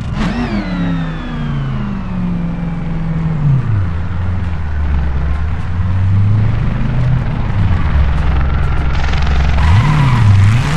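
A car engine slows down and settles into a low idle.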